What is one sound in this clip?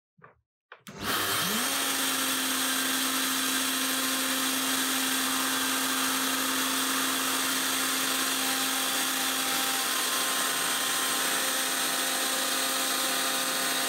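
A router motor starts with a rising whine and runs at a loud, steady high pitch.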